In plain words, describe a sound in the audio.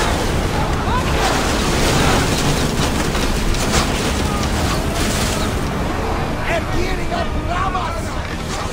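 Waves rush and splash against a ship's hull.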